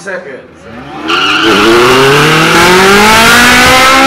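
A second car engine revs loudly close by.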